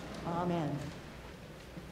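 A man sings a short chanted phrase in a large, echoing hall.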